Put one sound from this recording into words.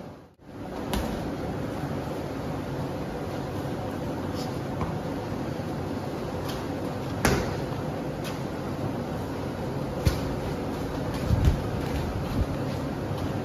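Boxing gloves smack sharply against padded mitts.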